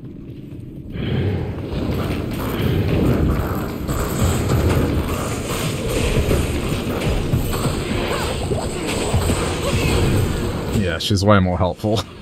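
Monsters growl and snarl.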